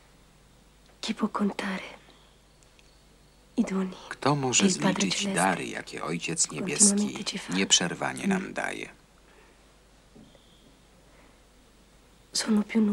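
A woman speaks weakly and with emotion, close by.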